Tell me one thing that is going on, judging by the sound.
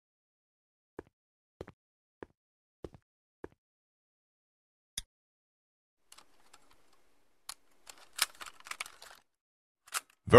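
Soft clicks and handling noises come from a small device.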